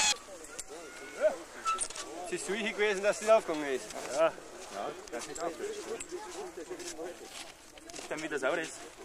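Men talk and laugh cheerfully close by, outdoors.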